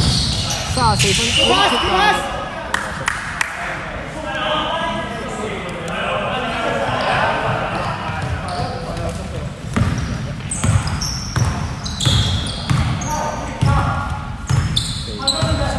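Basketball sneakers squeak on a hardwood court in a large echoing hall.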